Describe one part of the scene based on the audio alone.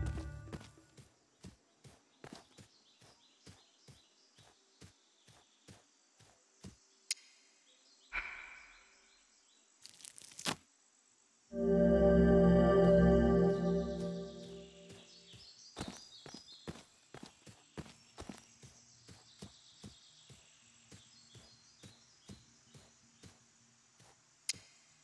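Footsteps tread steadily on grass and dirt.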